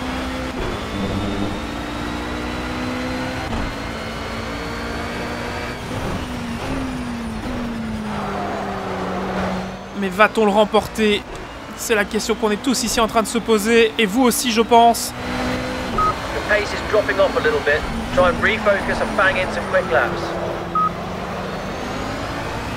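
A racing car engine hums and changes pitch as the car speeds up and slows down.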